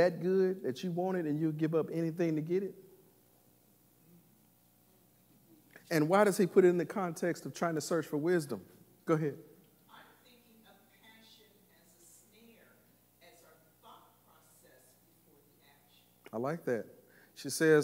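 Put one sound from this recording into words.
A man preaches with animation through a microphone in a large echoing hall, pausing between phrases.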